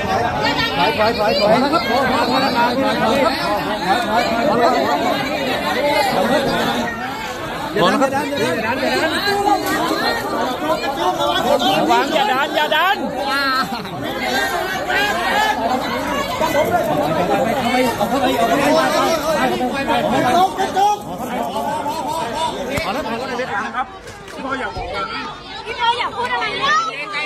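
A dense crowd of men and women talks and shouts all at once, close by.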